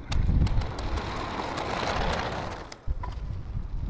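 A shovel scrapes and crunches into dry soil.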